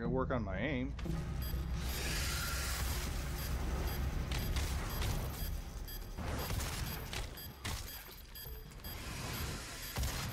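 Gunfire and explosions from a game roar steadily.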